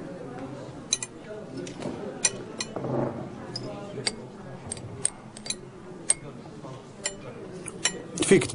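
Cutlery clinks lightly against plates.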